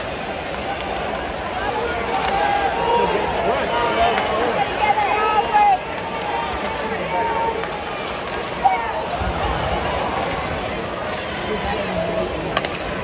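A hockey stick slaps a puck with a sharp crack.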